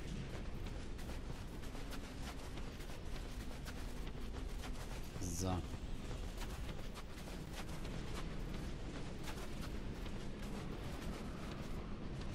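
Armoured footsteps crunch steadily through snow.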